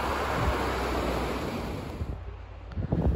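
A shallow river rushes over stones.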